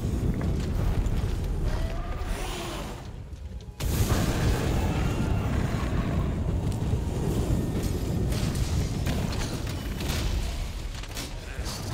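Flames roar with a deep, steady rumble.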